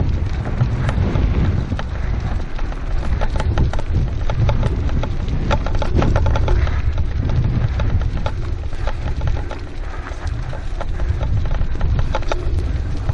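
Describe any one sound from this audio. Dogs' paws patter quickly on a dirt track.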